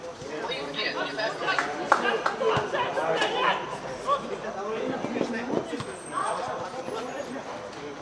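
A football thuds off a foot.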